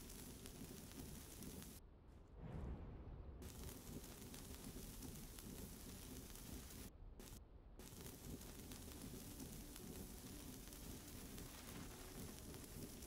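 A welding torch hisses and crackles with sparks.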